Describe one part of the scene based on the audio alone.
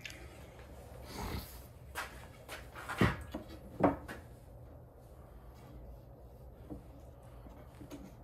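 A thin wooden strip knocks and taps against a wooden cabinet.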